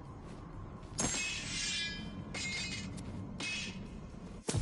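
Loot items pop out with bright chimes.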